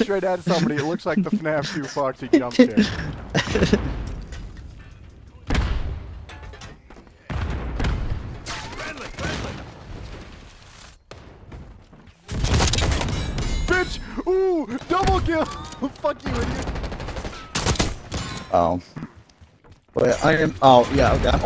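Gunshots ring out in rapid bursts.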